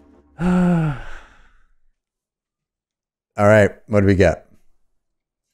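A man speaks with animation over an online call, close to the microphone.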